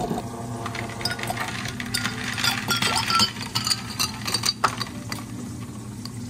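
Ice cubes clatter into a glass.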